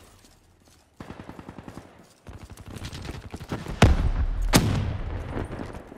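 An automatic rifle fires in a video game.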